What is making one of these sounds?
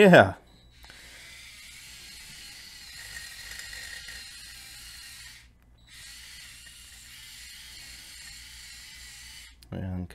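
Small electric motors whir as a toy crawler drives and turns.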